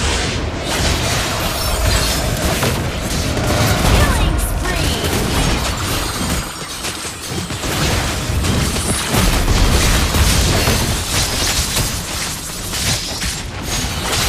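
Game spell effects and hits crackle and boom in quick succession.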